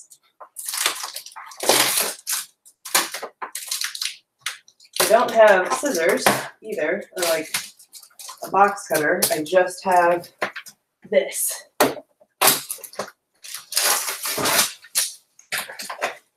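Cardboard boxes and papers rustle and scrape as someone rummages.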